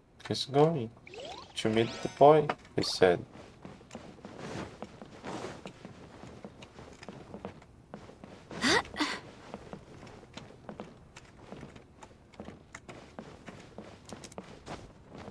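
Footsteps patter on wooden planks.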